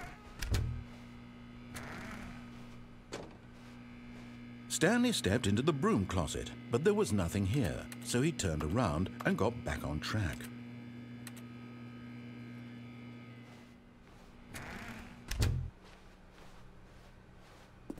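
A door opens.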